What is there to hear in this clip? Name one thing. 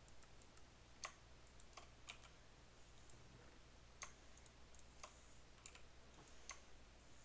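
Short sharp clicks sound now and then.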